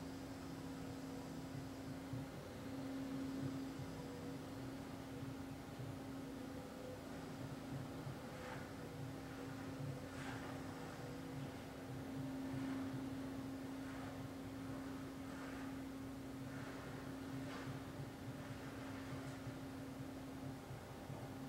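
A man hums a low, steady note close by.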